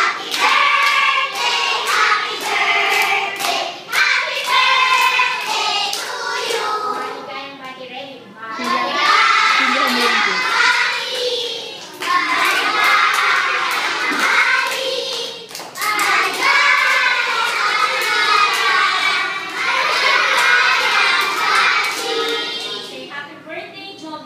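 A group of young children sings together loudly, close by.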